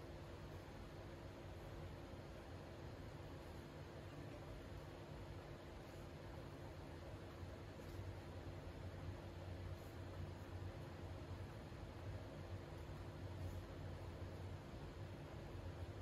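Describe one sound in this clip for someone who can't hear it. Paper rustles softly as small pieces are folded by hand.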